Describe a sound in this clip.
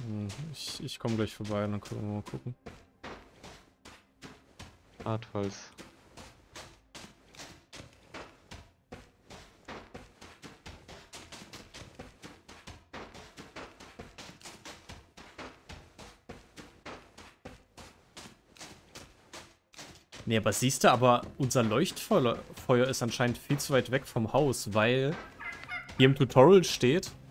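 Footsteps pad quickly over grass and soft ground.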